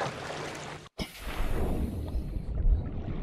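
Water gurgles and bubbles as a swimmer dives under.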